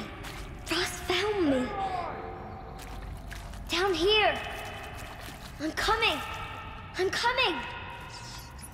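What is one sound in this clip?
Footsteps patter on wet stone.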